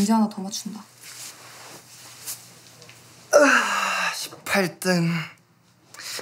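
A young man speaks quietly and sighs close by.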